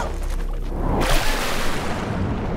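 A body splashes into water.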